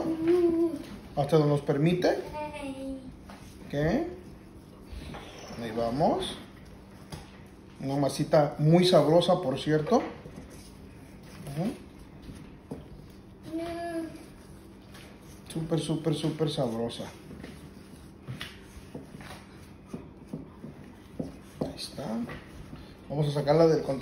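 A wooden spatula scrapes and stirs through flour in a glass bowl.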